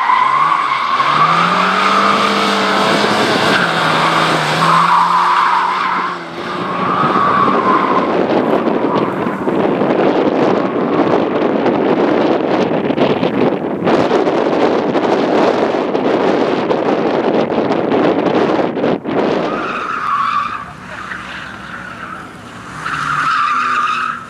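A four-cylinder rally car engine revs hard.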